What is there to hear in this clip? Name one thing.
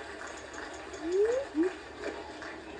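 A golf club swishes as a video game golfer swings.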